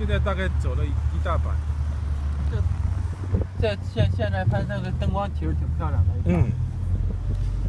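A middle-aged man speaks close to a microphone.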